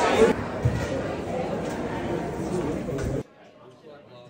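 A crowd murmurs and chatters loudly in a busy hall.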